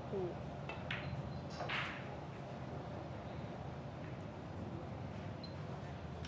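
Billiard balls knock together with a click.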